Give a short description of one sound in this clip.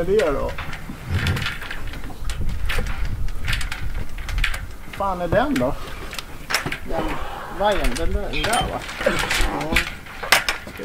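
A man talks nearby in a relaxed way.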